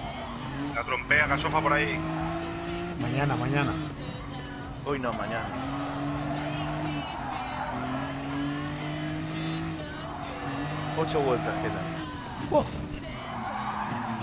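Tyres squeal through corners.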